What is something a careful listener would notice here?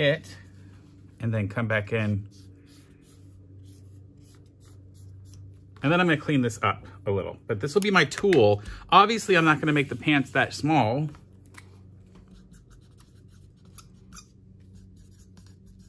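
A marker squeaks faintly across paper.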